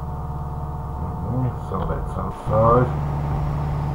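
A man speaks briefly through a microphone, close by.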